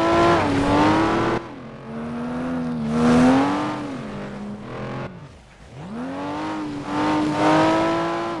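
Tyres skid and hiss on icy snow.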